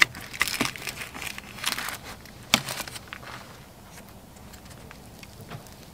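Flaky bread crackles as hands tear it apart.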